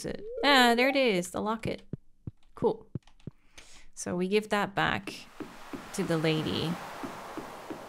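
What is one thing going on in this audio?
A young woman talks animatedly into a nearby microphone.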